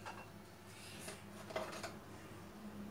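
Plastic dishes clatter in a dish rack.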